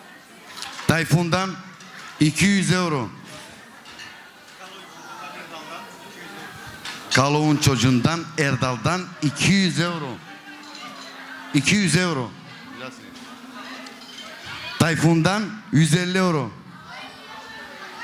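A man sings loudly through a microphone in a reverberant hall.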